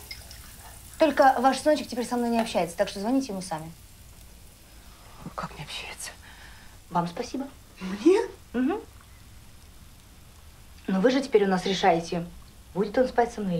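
A young woman speaks casually nearby.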